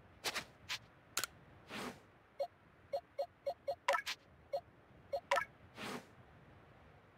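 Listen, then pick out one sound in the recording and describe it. Short electronic menu blips and chimes sound as selections are made.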